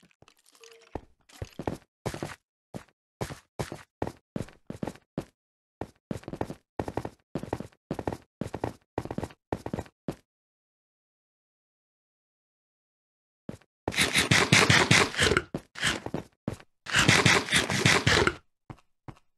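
A pickaxe chips at stone in quick, regular strikes.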